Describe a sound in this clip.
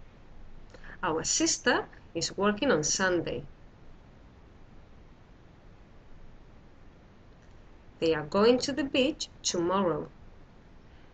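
A woman speaks calmly and close to a microphone, in two short bursts.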